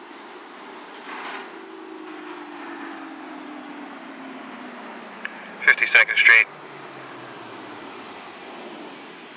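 A train's motors whine lower as it slows into a station.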